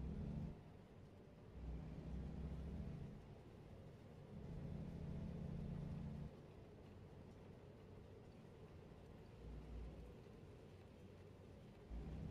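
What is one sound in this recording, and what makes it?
A truck engine rumbles steadily, rising and falling as it drives slowly.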